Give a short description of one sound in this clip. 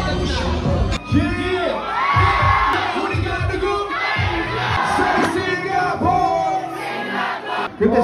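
A heavy music beat thumps through loudspeakers.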